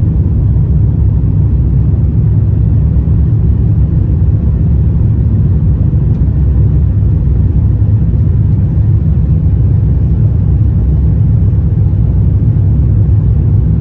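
Jet engines roar steadily with a deep rumble inside an airplane cabin.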